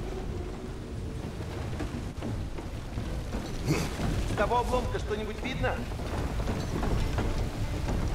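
Heavy footsteps thud on wooden planks.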